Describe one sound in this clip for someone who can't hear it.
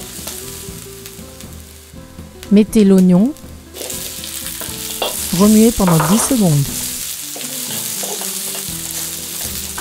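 A spatula scrapes and stirs against a metal pan.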